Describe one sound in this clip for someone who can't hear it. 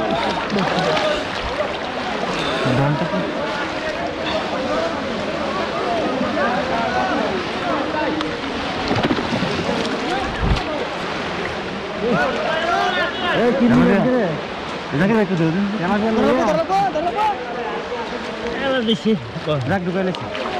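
Water splashes as men wade.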